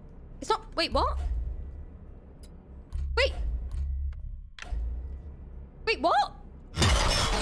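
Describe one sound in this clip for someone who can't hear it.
A young woman squeals and exclaims close to a microphone.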